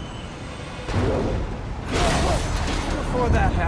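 An explosion booms with a loud blast.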